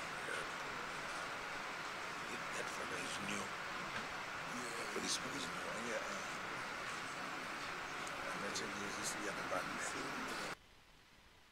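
Men and women murmur and talk quietly in a large room.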